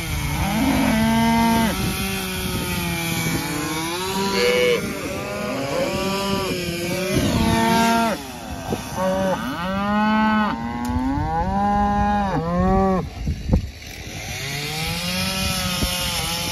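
Calves bawl loudly and repeatedly close by.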